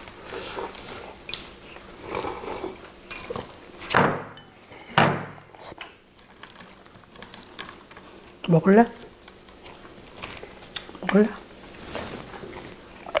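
People chew and slurp food close by.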